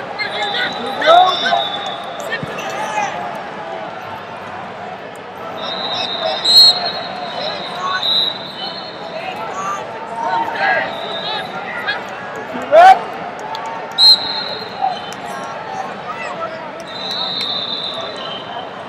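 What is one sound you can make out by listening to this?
A large crowd murmurs and calls out in a big echoing hall.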